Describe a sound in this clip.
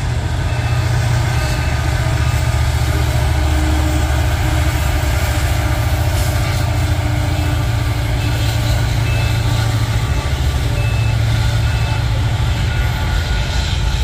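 A locomotive engine drones low and heavy.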